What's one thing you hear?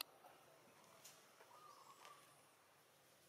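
A monkey gives soft, high squeaking calls.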